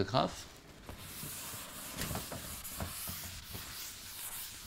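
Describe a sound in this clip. A cloth rubs softly and steadily across a chalkboard.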